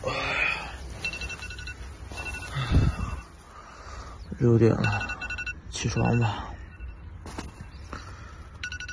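A phone alarm beeps in a quick repeating pattern.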